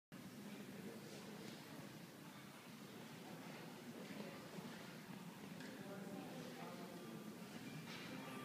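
A school wind band plays a piece together in a large echoing hall.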